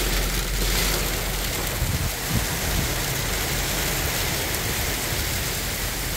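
Rain and sleet hiss steadily outdoors.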